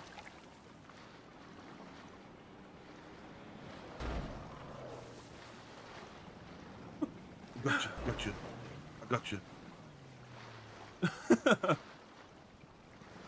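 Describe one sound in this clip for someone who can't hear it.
Water splashes as swimmers paddle through it.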